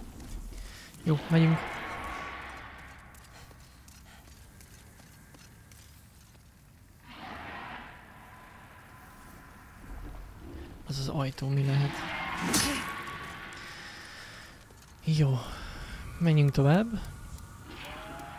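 A young man talks calmly and close into a microphone.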